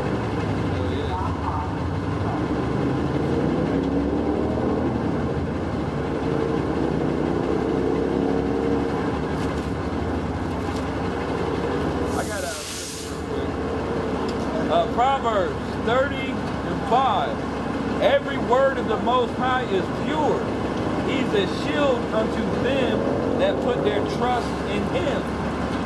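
A man chants a prayer aloud close by, outdoors.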